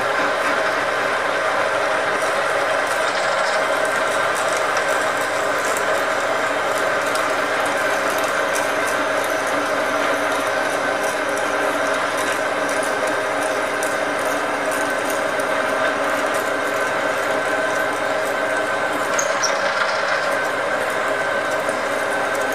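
A drill bit grinds into spinning metal with a scraping whine.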